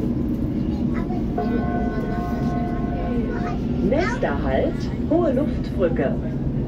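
An electric train motor whines as the train pulls away.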